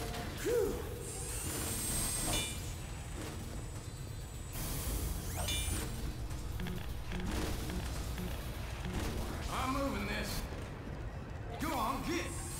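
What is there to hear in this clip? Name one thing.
A metal wrench clangs repeatedly against machinery.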